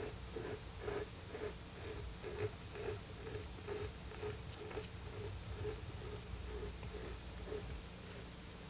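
Hands pat and slap soft clay in a steady rhythm.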